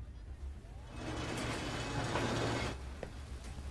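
A heavy door slides open.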